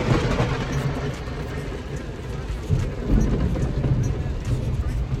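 A car engine rumbles steadily inside a moving car.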